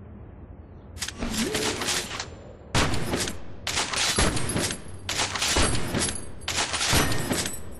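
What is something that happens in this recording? A bolt-action sniper rifle fires loud single shots.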